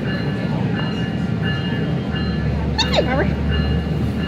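A railway crossing bell rings.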